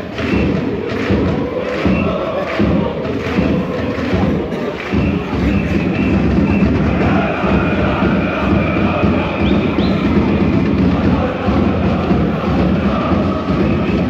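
A large crowd of fans chants and sings loudly together in an open-air stadium.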